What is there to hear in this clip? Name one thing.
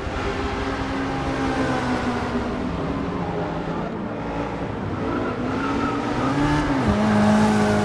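A sports car engine roars at high revs, its pitch rising and falling with gear changes.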